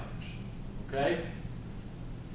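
A man makes a short sound with his voice close to a microphone.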